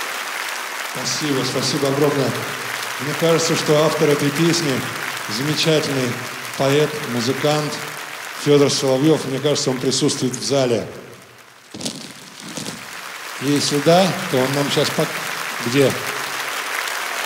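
A man speaks into a microphone with a deep voice, heard through loudspeakers in a large hall.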